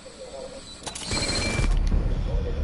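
A gunshot blasts loudly.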